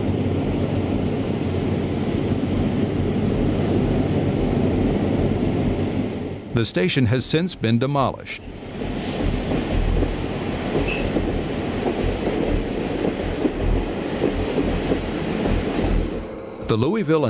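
A diesel locomotive rumbles slowly past.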